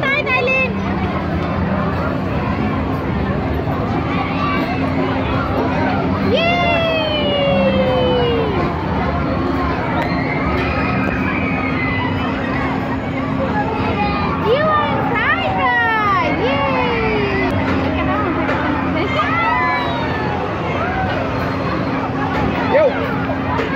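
A crowd chatters outdoors throughout.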